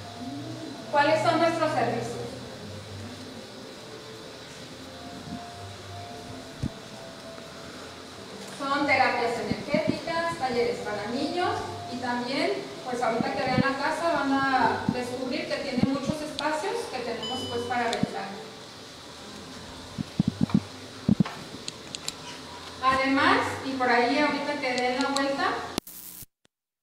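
A young woman speaks into a microphone, heard through a loudspeaker in an echoing room.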